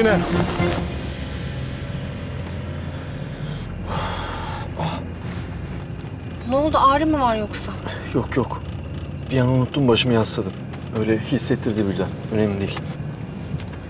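A young man speaks in an agitated voice close by.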